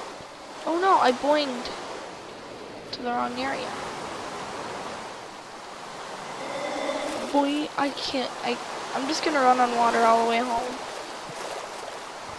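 Water splashes and gurgles while swimming.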